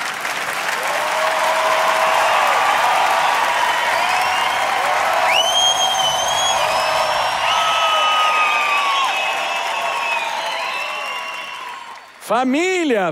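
A large crowd cheers and applauds loudly in a big echoing hall.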